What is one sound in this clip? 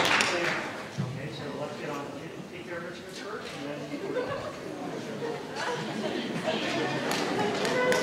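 A concert band plays softly in a large hall.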